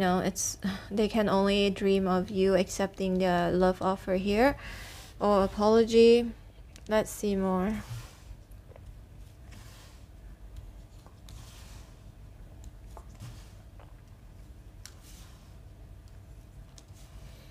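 Cards slide and tap softly on a table.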